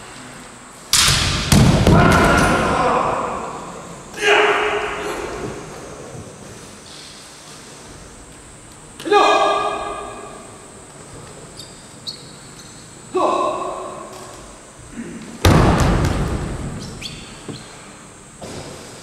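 Men shout loud, drawn-out battle cries that echo through a large hall.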